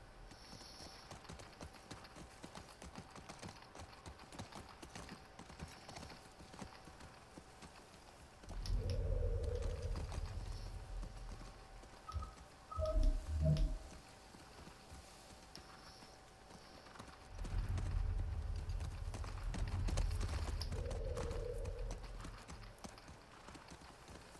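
A horse's hooves clop steadily on grass and pavement.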